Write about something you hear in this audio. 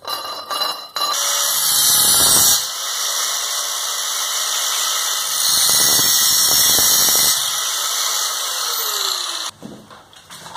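An angle grinder whines loudly, cutting through metal.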